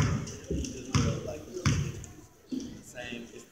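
A basketball bounces on a wooden court with echoing thuds.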